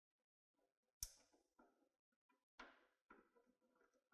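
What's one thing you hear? A wrench clicks against a metal bolt.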